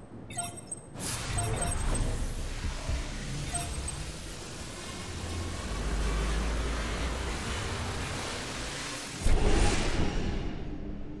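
An energy beam hums and crackles loudly.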